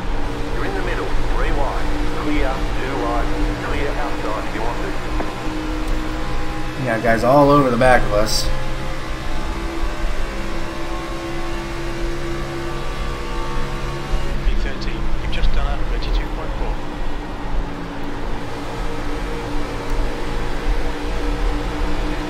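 Other race cars roar past close by.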